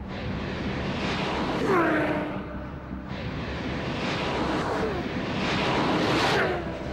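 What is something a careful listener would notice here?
Race cars roar past one after another, their engine notes dropping as they go by.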